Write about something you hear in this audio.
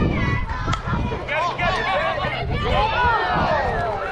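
A bat hits a softball with a sharp crack.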